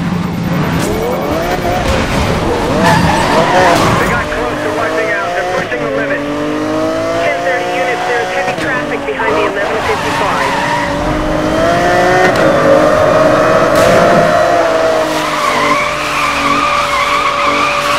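A sports car engine roars at high revs, rising and falling as it shifts gears.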